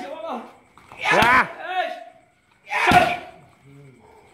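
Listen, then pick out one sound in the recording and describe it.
A man grunts sharply with each strike.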